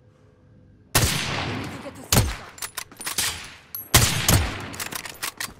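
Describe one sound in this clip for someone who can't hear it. A rifle fires several loud, sharp shots.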